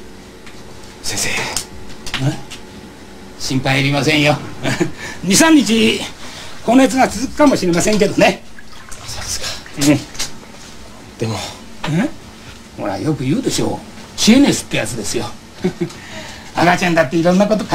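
A middle-aged man speaks calmly and reassuringly nearby.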